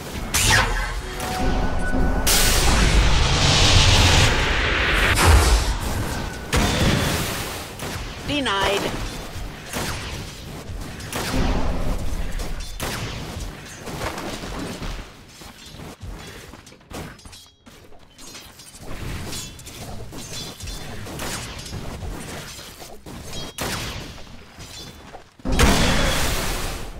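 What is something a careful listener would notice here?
Magical spell blasts crackle and boom in a fast battle.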